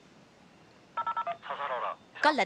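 A two-way radio beeps.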